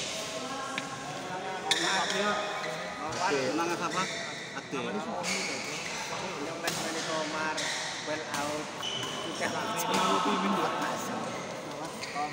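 Rackets strike a shuttlecock back and forth in an echoing hall.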